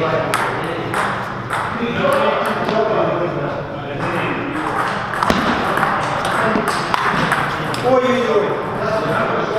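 A ping-pong ball clicks back and forth between paddles and a table in an echoing hall.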